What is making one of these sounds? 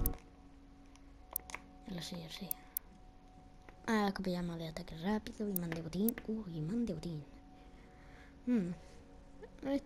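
Game menu selections click with soft electronic tones.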